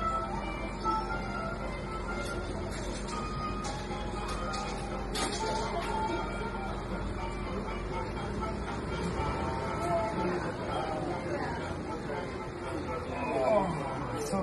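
A lever on an arcade machine clicks.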